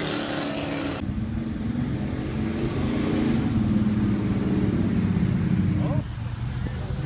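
A classic V8 muscle car rumbles as it accelerates past.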